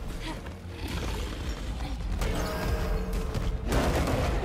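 A heavy creature stomps and thuds on the ground.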